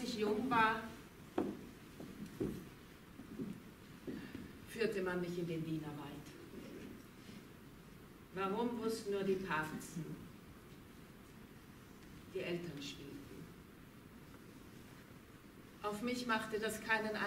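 A woman speaks calmly to an audience, with pauses, in a large echoing hall.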